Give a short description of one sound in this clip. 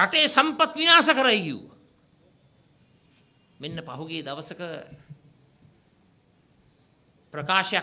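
A man speaks forcefully into microphones, his words heard through a loudspeaker with pauses between phrases.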